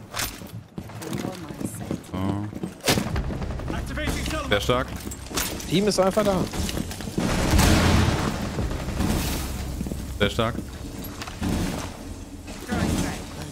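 Footsteps thud on wooden stairs and floorboards.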